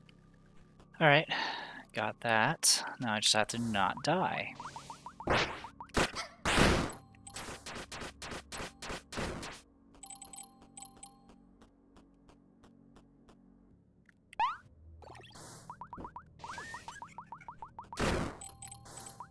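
Arrows whoosh and hit enemies with sharp bursts in a retro video game.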